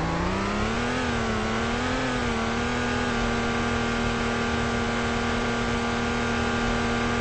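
A car engine hums steadily, rising and falling slightly in pitch as it accelerates.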